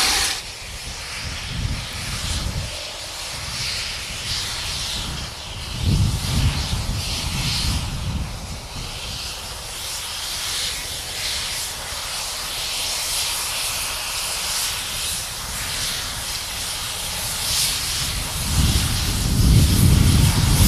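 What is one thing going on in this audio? Wind buffets outdoors, rumbling low.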